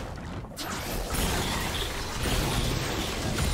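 Magic spells crackle and burst in a video game fight.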